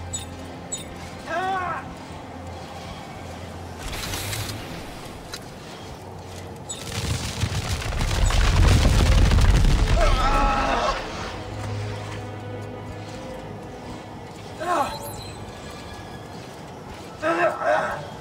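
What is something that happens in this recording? Wind howls and gusts in a snowstorm, swelling to a loud, deep roar midway.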